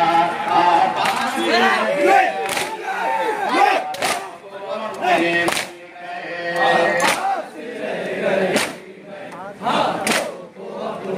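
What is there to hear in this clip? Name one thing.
A crowd of men beat their chests in rhythm with loud slaps.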